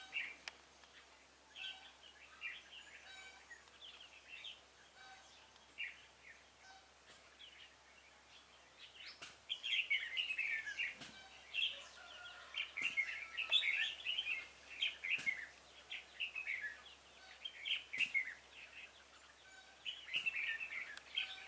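Small birds chirp and twitter in the trees nearby, louder from the middle on.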